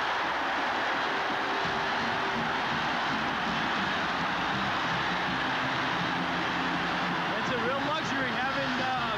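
A large crowd cheers and roars in a big echoing stadium.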